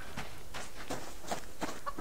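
A chicken clucks nearby.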